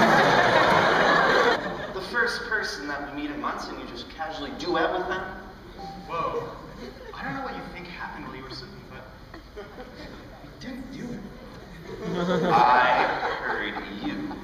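Young men and women talk and call out together in a large echoing hall.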